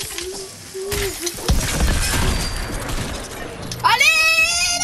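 Gunfire rattles in rapid bursts at close range.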